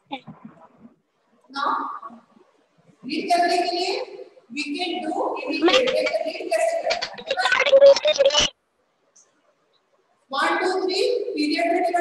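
A middle-aged woman speaks clearly and steadily, as if explaining a lesson, with short pauses.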